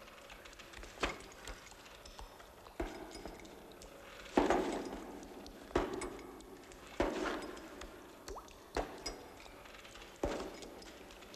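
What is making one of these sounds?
A pickaxe strikes rock in heavy, repeated blows, each followed by crumbling debris.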